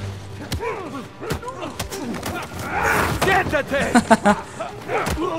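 Punches thud as two men scuffle.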